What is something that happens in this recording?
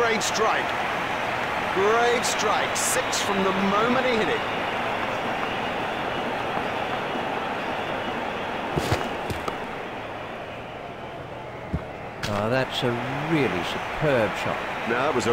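A large crowd murmurs and cheers steadily.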